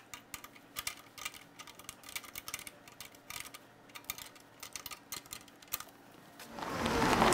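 A metal wrench clicks and taps against engine fittings.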